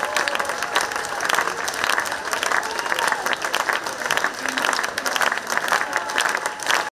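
Several people clap their hands.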